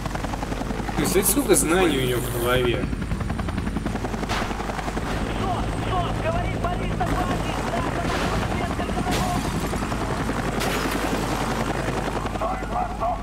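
A helicopter's rotor thuds steadily overhead.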